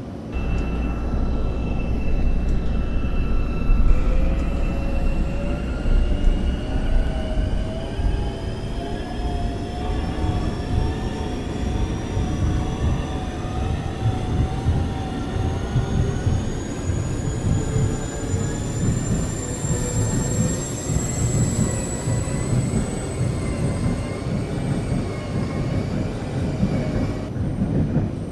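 An electric train's motor whines steadily, then rises slowly in pitch as the train speeds up.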